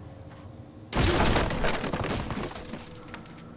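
Wooden boards crash and splinter loudly.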